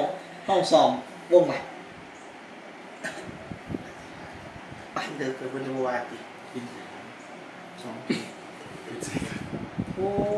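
A second young man laughs softly nearby.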